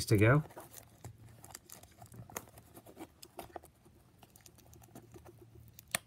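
Stiff plastic crinkles and clicks as hands handle it.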